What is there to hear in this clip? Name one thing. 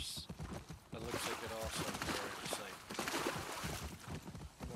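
A horse splashes through shallow water.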